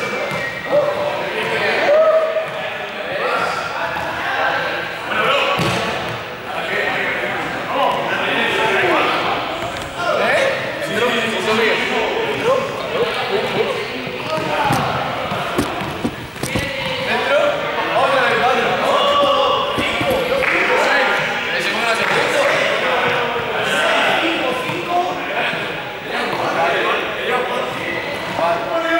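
A man speaks steadily with animation in a large echoing hall.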